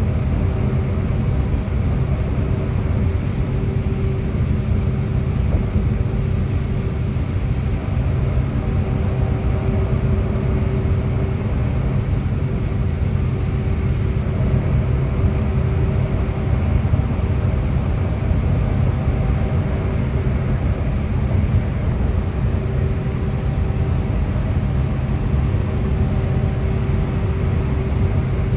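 Tyres roar on the road surface, echoing in an enclosed space.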